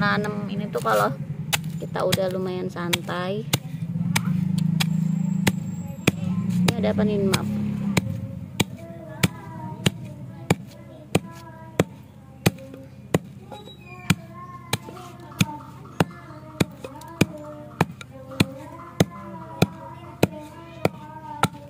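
A wooden pestle pounds crushed shells in a stone mortar with steady thuds.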